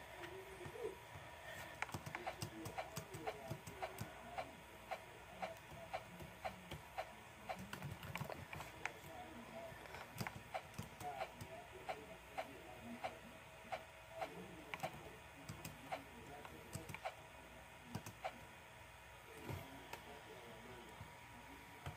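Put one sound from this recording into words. Short clicking game jump sounds repeat quickly through a small speaker.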